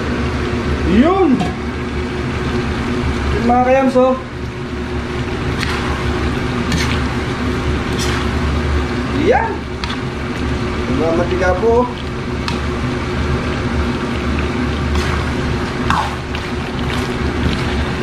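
Meat sizzles steadily in a hot pan.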